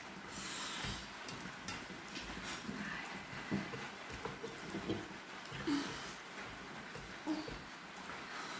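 Fingers squelch as a man mixes rice and curry by hand.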